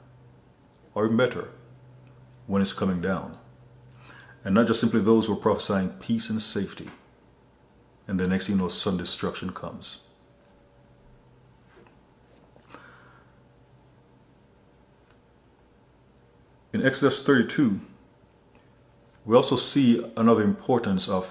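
A man speaks calmly and close to a microphone, in short bursts with pauses.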